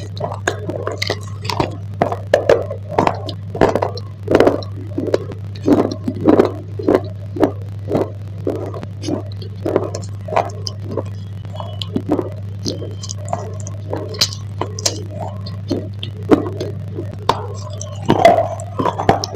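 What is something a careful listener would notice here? A person bites into a crunchy bar close to a microphone.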